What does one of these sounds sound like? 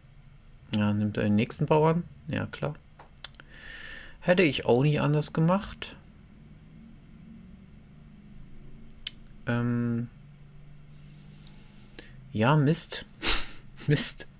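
A young man talks close through a headset microphone, in short bursts.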